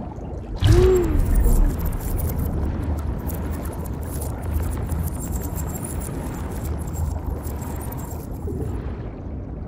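Bubbles fizz and gurgle underwater.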